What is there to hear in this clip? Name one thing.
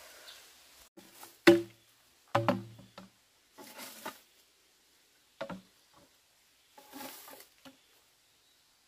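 Bamboo poles knock and clatter.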